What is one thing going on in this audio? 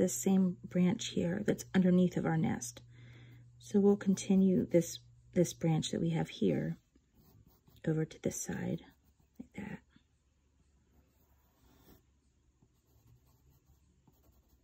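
A pencil scratches lightly on paper.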